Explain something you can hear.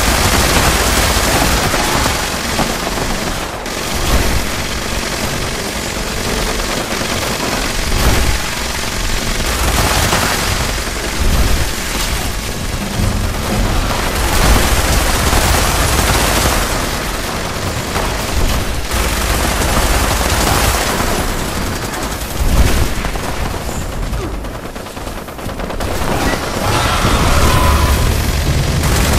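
Explosions boom and rumble.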